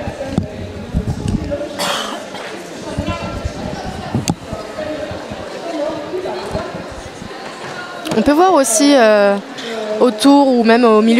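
Roller skates roll and scrape across a wooden floor.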